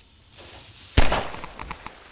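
A pistol fires a single loud shot with a short echo.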